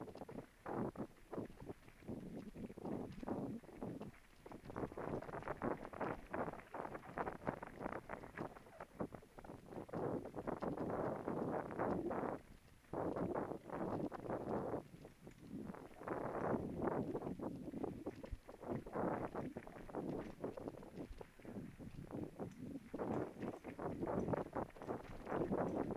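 Bicycle tyres rumble and rattle over a rough, rocky dirt trail.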